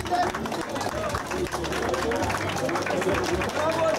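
A crowd of people claps along in rhythm.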